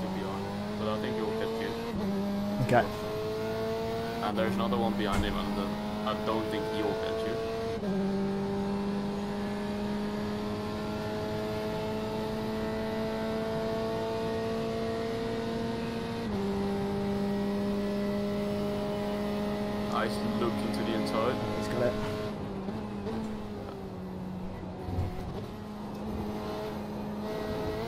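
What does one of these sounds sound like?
A racing car engine drones steadily, rising in pitch and dropping sharply at each gear change.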